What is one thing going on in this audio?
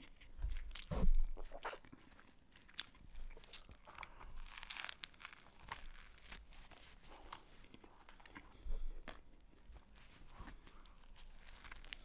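Wet chewing and smacking sounds come from close by.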